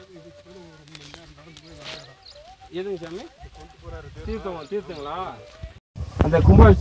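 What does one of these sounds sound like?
A man talks close to a microphone outdoors.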